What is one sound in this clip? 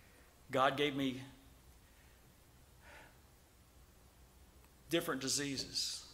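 A middle-aged man speaks firmly into a microphone, pausing between phrases.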